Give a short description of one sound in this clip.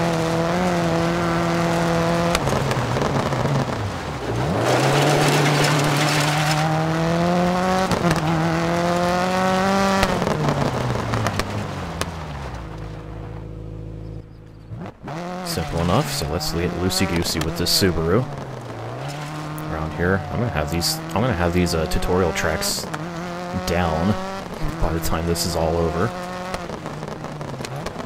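A rally car engine revs and roars, rising and falling as the gears shift.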